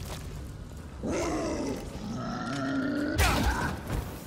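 A burning creature groans and moans.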